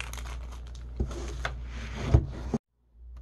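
A box thumps down onto a table.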